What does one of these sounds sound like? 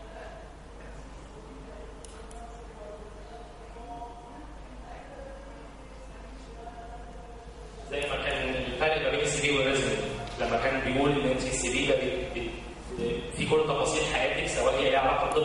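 A man speaks through a microphone in a large echoing hall, lecturing with animation.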